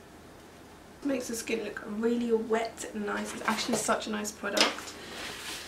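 A young woman talks calmly and close to a microphone.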